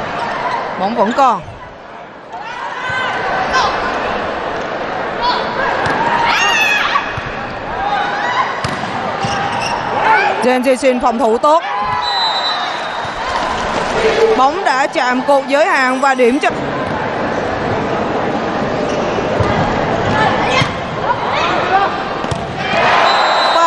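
A volleyball is struck hard with a slap.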